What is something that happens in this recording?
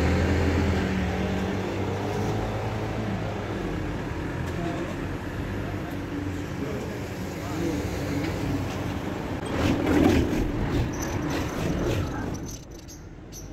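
Cars drive past one after another.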